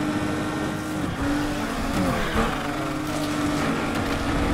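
Tyres screech as a car slides through a turn.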